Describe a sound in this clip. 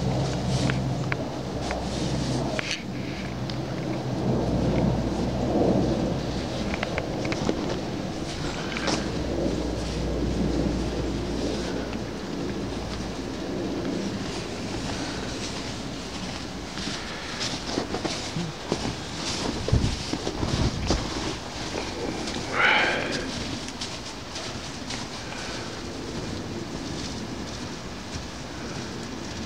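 Boots crunch on snow as a small child walks.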